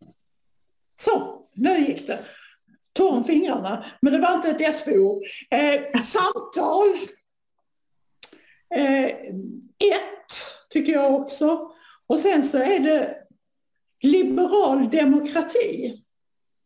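An elderly woman speaks calmly over an online call.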